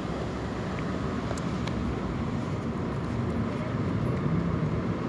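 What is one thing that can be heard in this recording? Street traffic rumbles steadily nearby.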